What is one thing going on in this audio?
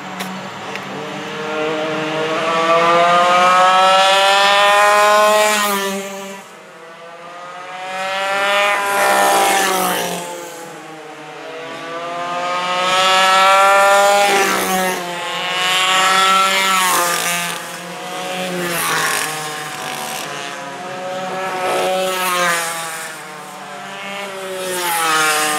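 Kart engines whine, rising and falling in pitch as they pass and fade.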